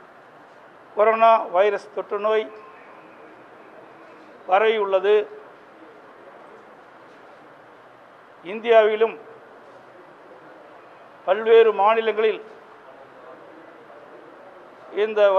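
A middle-aged man speaks calmly in short phrases into microphones, with pauses between them.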